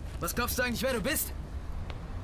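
A young man speaks tensely up close.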